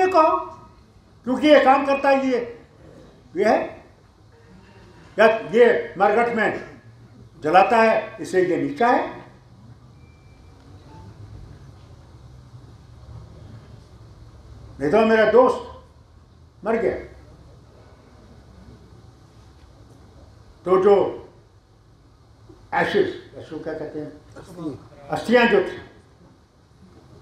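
An elderly man speaks into a microphone in bursts, with long pauses between phrases.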